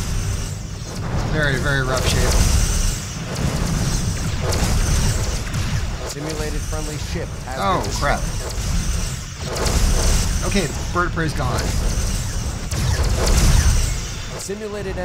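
A spaceship engine rumbles low and steady.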